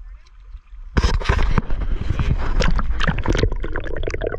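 Water gurgles and bubbles loudly up close.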